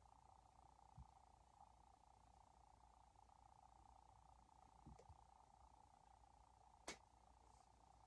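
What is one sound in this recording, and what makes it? Small plastic toy bricks click and clatter as they are handled.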